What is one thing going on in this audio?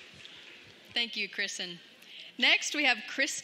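A young woman speaks animatedly through a loudspeaker in a large echoing hall.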